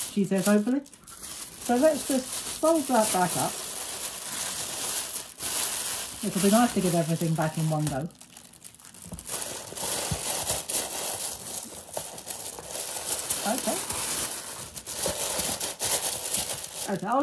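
Tissue paper rustles and crinkles close by.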